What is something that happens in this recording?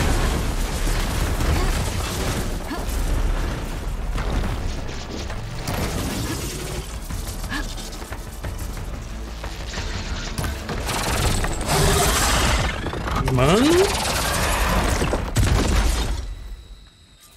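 A large machine creature roars and crashes loudly.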